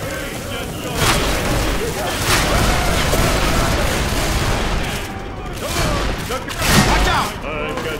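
A blade swishes and slashes through bodies.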